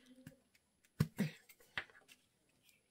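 A plastic cap pops off a glue stick.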